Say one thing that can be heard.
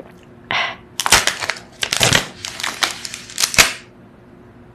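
A plastic wrapper crinkles and tears as a young woman bites it open.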